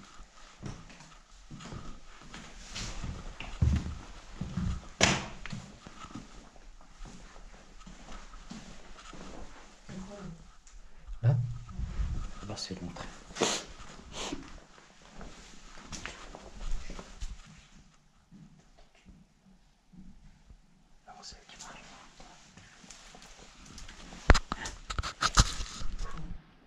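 Footsteps crunch slowly on a gritty floor.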